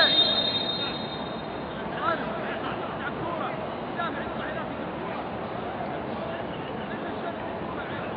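Men shout to each other across a large open stadium.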